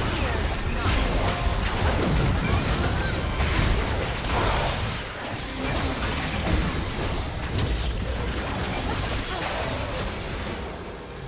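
Magic blasts whoosh and crackle in a busy fight.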